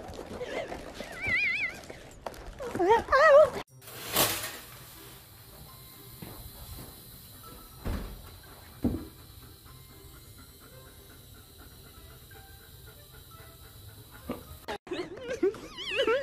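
A kitten meows repeatedly up close.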